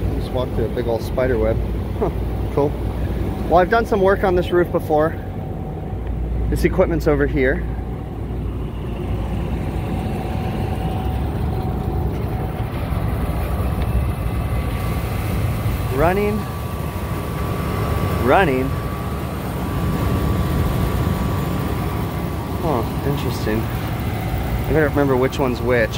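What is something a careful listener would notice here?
Refrigeration units hum steadily outdoors.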